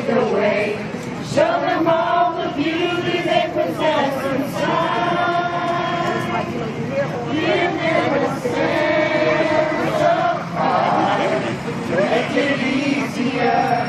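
A crowd of men and women sings together loudly outdoors.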